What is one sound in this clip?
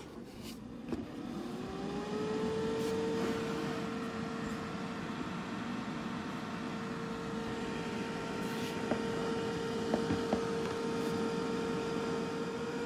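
An air fryer's fan whirs up to a steady hum.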